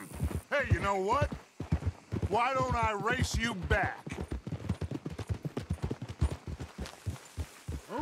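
Horses' hooves thud steadily on a dirt track.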